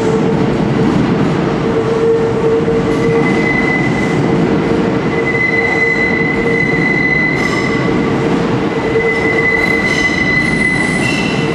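Train brakes squeal with a steady high whine.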